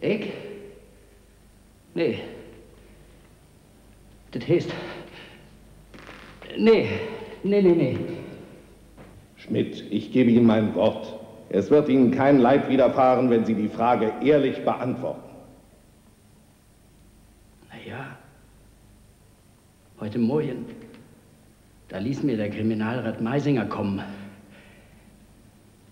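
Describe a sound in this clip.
A middle-aged man speaks with emotion, in bursts, in an echoing hall.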